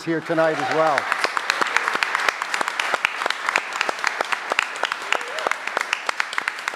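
A crowd claps hands in a large echoing hall.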